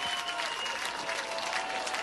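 An audience claps along.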